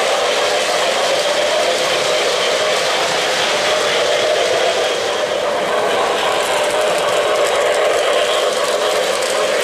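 O-gauge model train cars rumble and click along three-rail metal track.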